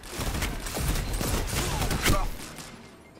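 Loud gunshots fire close by.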